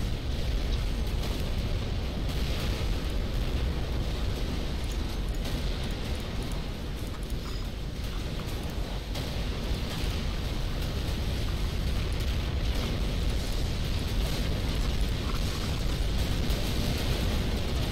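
Rumbling explosions and rapid weapon fire crackle through a loud battle.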